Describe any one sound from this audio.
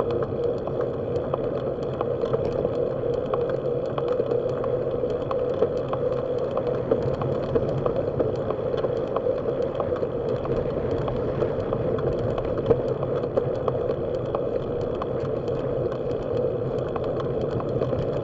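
Tyres roll and hum on rough asphalt.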